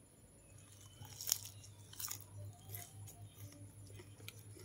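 A woman chews crunchy food close up.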